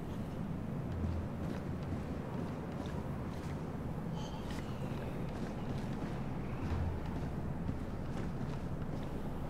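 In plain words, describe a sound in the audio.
Footsteps tread on a hard floor indoors.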